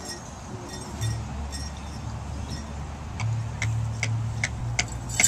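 A drum beats steadily through loudspeakers outdoors.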